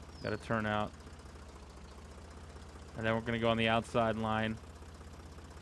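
A tractor engine rumbles steadily at low speed.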